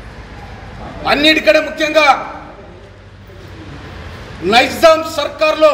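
An elderly man speaks forcefully and loudly, close by.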